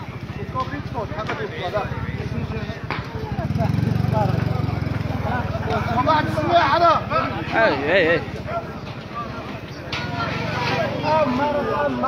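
Men shout and call out excitedly nearby.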